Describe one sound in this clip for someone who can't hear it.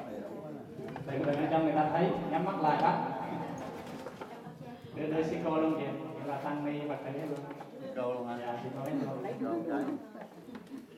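An elderly man speaks nearby in a calm, friendly voice.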